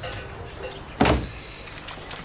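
Dishes clink on a tray.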